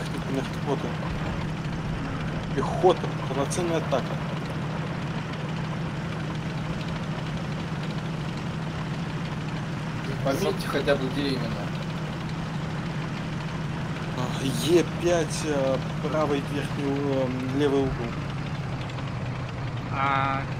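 A tank engine rumbles steadily as the vehicle drives.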